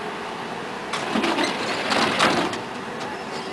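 Tram doors thump and clatter shut.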